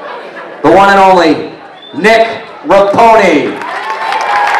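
A man speaks loudly into a microphone through loudspeakers.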